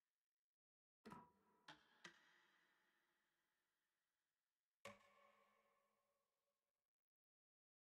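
Soft electronic menu chimes ring out and fade.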